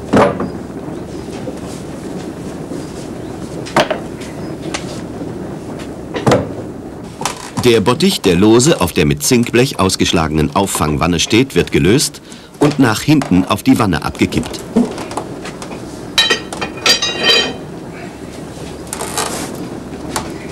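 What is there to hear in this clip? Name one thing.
Wooden slats knock and clunk.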